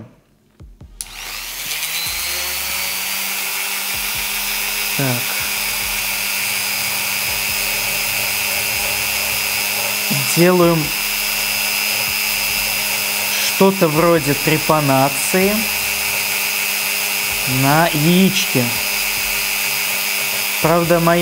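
A small electric drill whines steadily while boring into an eggshell.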